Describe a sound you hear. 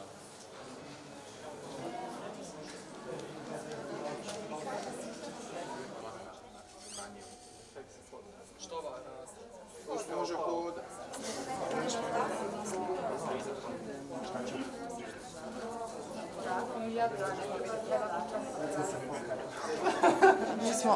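A crowd murmurs in a busy hall.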